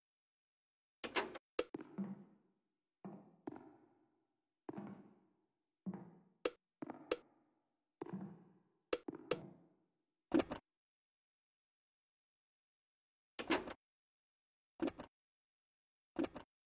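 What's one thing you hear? Short menu clicks and beeps sound each time a selection changes, with a brief echoing tail.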